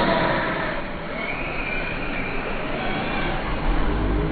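A small electric toy car whines as it speeds past on the track.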